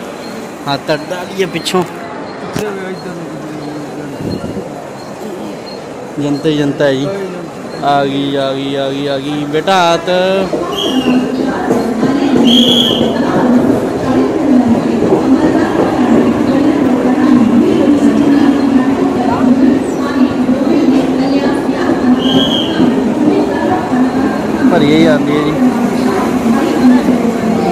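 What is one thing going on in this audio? A large crowd murmurs and chatters nearby.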